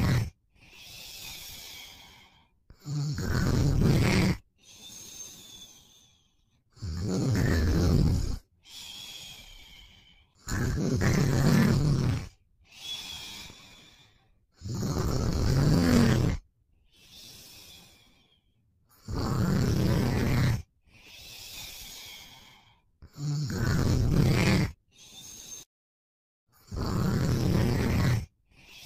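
A person snores loudly and slowly, with quieter breaths out between the snores.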